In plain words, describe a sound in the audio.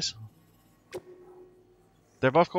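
A short electronic click rings out, followed by a soft tone.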